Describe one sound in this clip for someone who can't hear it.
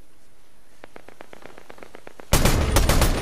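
Quick footsteps patter over ground.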